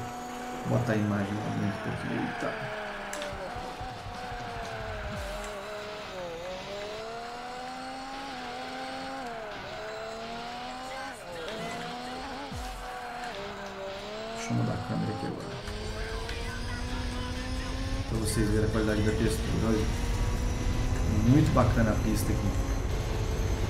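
A racing car engine revs and whines, rising and falling in pitch as the car shifts gears.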